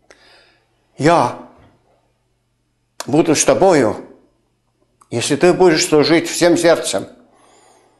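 An elderly man speaks calmly and clearly into a nearby microphone, with pauses.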